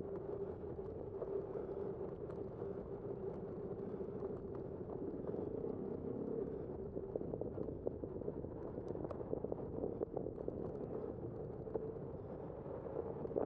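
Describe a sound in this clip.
A bicycle rolls steadily along a paved road.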